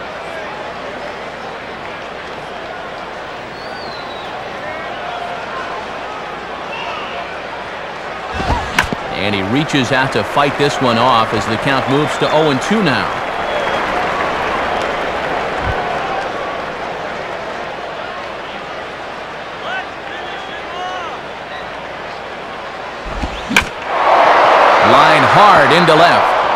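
A large crowd murmurs steadily and bursts into loud cheers.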